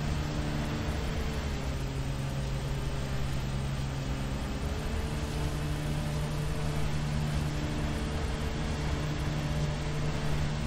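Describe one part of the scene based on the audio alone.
Mower blades whir through grass.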